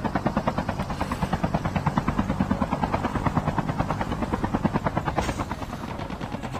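A helicopter's rotor chops rapidly and loudly.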